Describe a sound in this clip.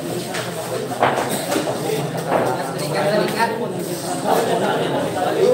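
Billiard balls clatter as they are racked.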